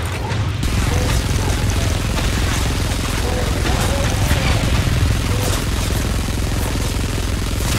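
A rapid-fire gun blasts in a fast, continuous rattle.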